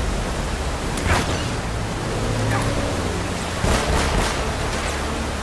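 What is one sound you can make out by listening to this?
Explosions boom in quick bursts.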